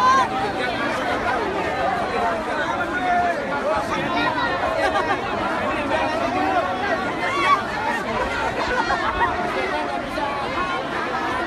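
A large crowd of men and women talks and shouts all around, close by, outdoors.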